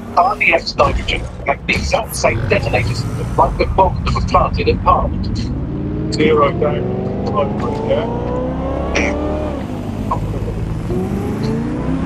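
A car engine revs and accelerates.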